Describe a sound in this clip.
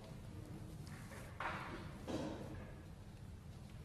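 A man's footsteps pad softly.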